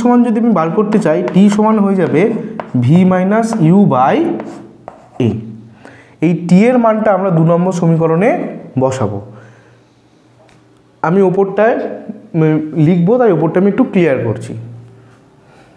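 A man speaks steadily through a close microphone, explaining.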